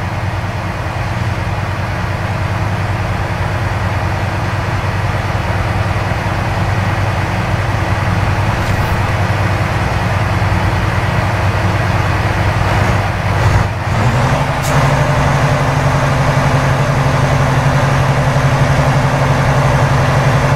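A heavy truck engine drones steadily as the truck drives along.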